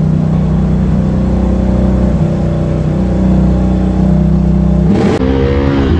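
An all-terrain vehicle engine rumbles loudly at a steady idle.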